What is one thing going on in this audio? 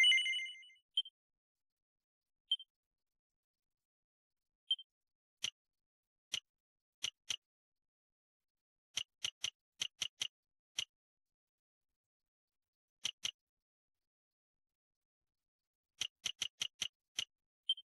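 Game menu cursor blips tick again and again.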